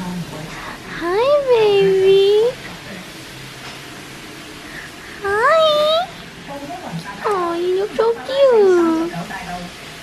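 A small dog howls in long, wavering cries.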